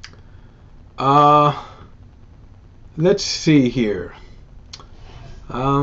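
An elderly man talks with animation into a microphone, in short bursts.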